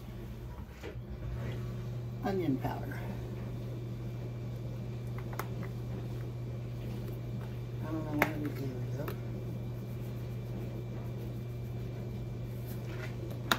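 A pot of soup simmers and bubbles softly.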